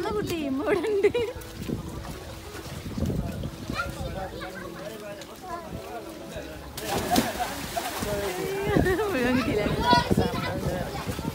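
Young boys shout and call out to each other outdoors.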